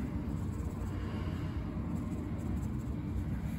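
Fine granules pour softly from a plastic bottle into a hand.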